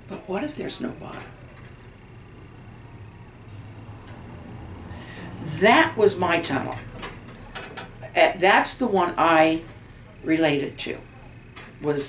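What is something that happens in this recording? An elderly woman talks calmly close by, with pauses.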